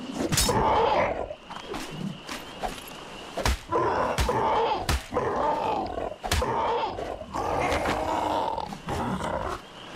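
A hatchet strikes flesh with repeated heavy thuds.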